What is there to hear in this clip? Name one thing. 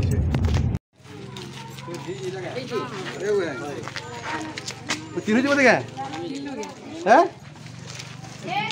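Several women and men talk with animation close by, outdoors.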